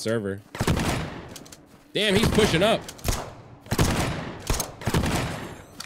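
A gun fires sharp, loud shots.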